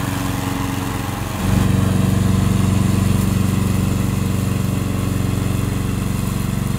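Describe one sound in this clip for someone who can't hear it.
A small engine chugs steadily as a mower crawls through tall grass, growing louder after a moment.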